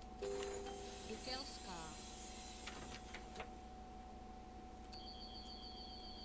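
A bus engine idles with a steady hum.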